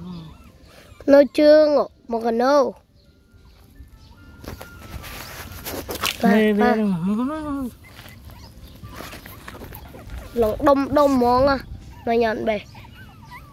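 Puppies whine and yelp up close.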